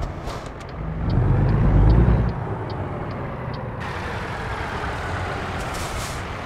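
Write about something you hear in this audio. A truck engine rumbles low and swells as the truck pulls away.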